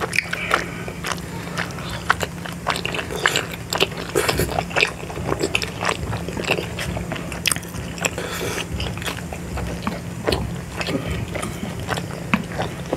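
Two people chew soft dumplings wetly and loudly close to a microphone.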